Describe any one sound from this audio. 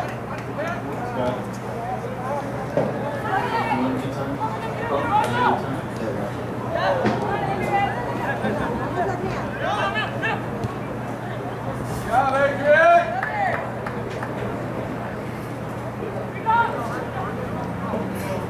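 Spectators on the sideline cheer and call out.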